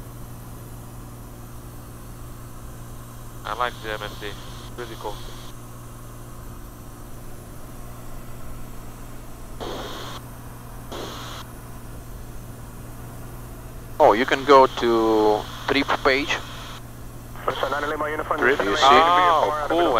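A small plane's engine drones steadily, heard from inside the cabin.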